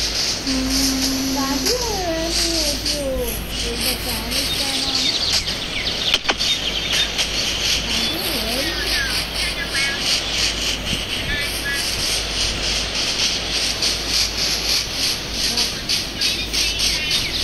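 Footsteps crunch steadily on grass.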